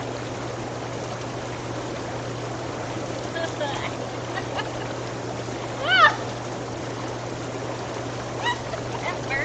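Water bubbles and churns steadily in a hot tub.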